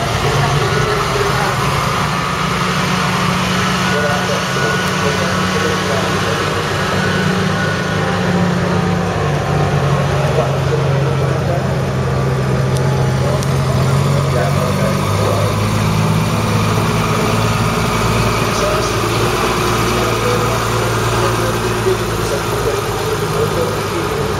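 A heavy V8 diesel truck idles.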